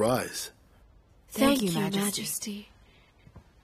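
A young woman cries out in distress close by.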